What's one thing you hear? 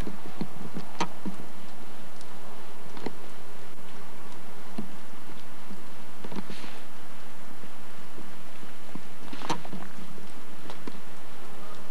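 Ice-coated branches crack and snap now and then.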